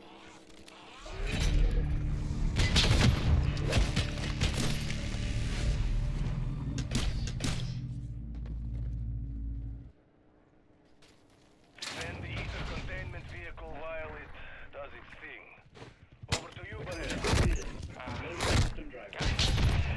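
Gunfire rattles rapidly in bursts.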